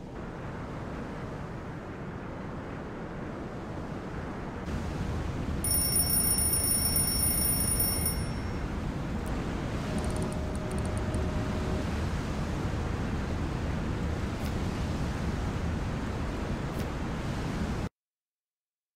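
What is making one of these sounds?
Waves wash and rumble against the hull of a boat at sea.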